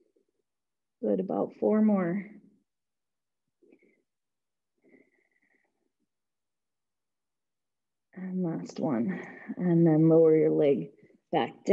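A young woman talks calmly into a nearby microphone, with pauses.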